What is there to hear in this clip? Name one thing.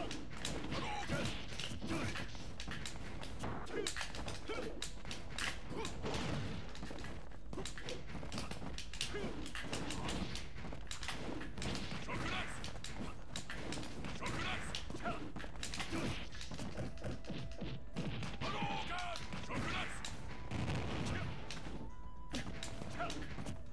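A young man comments with animation into a close microphone.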